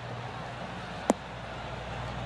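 A golf ball thuds onto the grass.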